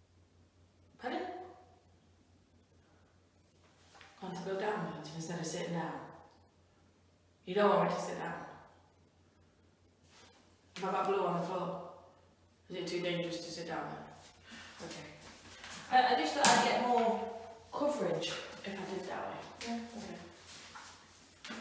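A woman talks calmly close by, in short bursts.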